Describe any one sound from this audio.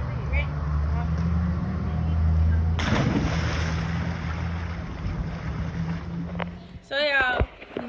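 Water splashes loudly in a pool outdoors.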